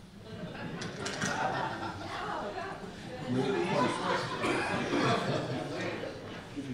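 An audience laughs loudly in a large room.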